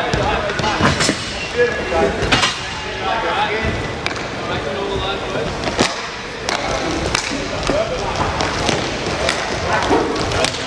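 Hockey sticks clack sharply against a ball and against each other.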